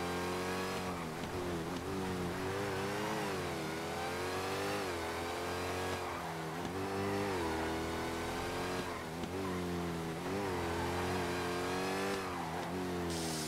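A car engine revs hard, rising and falling as the gears shift.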